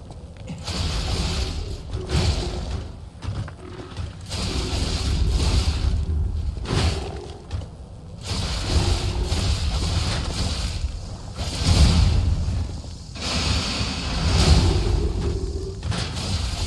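Metal blades clang and strike against metal armour again and again.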